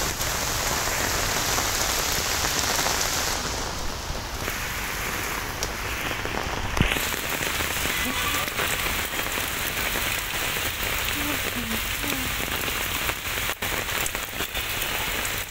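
Heavy rain pours down steadily outdoors, splashing on pavement and puddles.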